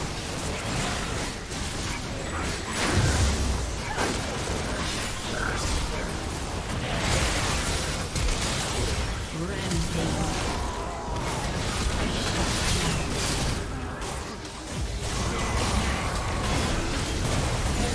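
Magic blasts and clashing hits from a game fight go off in quick bursts.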